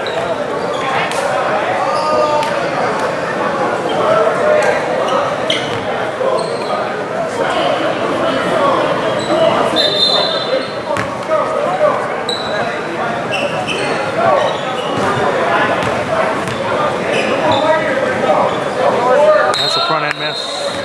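A crowd of spectators and players chatter throughout, echoing in a large gym hall.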